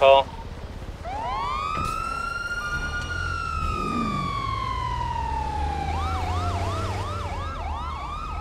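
A siren wails, slowly falling, then switches to a fast yelp.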